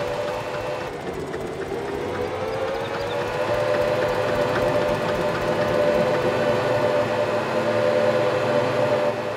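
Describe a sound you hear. A van engine hums steadily and rises in pitch as it speeds up.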